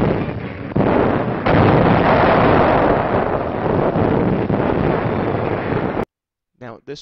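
Shells explode with a heavy, rumbling roar.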